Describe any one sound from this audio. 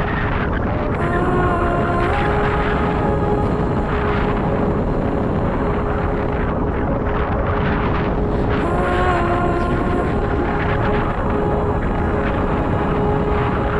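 Wind roars loudly past the microphone outdoors.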